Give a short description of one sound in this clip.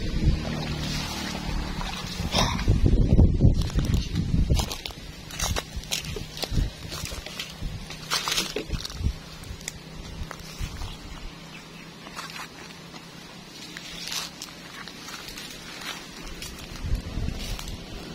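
Footsteps crunch through dry leaves and brush.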